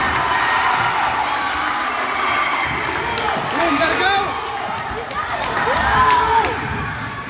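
A crowd of children and adults chatters steadily in the background.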